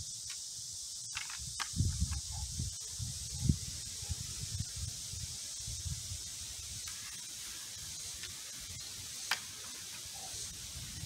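A katana swishes through the air.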